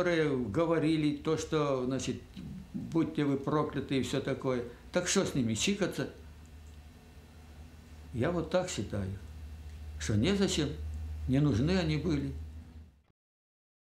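An elderly man speaks calmly and earnestly, close by.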